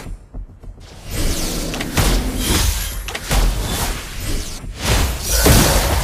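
Magic blasts and hits crackle and boom in a fast video game fight.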